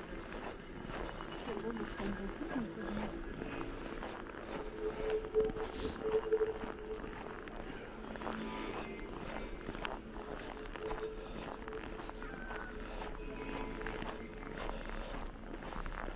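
Footsteps crunch steadily on packed snow.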